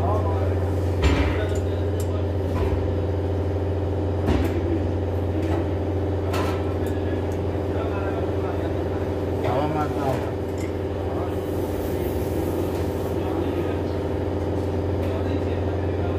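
Metal tools clink and knock against engine parts.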